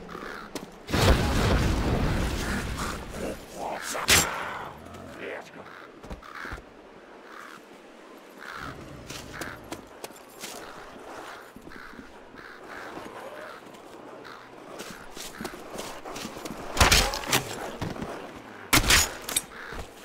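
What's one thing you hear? A pistol fires loud single shots.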